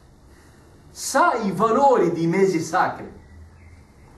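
A man speaks with emphasis.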